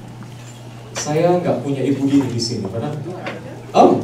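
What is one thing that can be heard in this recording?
A man speaks calmly through a microphone over loudspeakers in an echoing hall.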